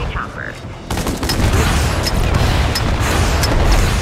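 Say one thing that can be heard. An explosion booms with a low rumble.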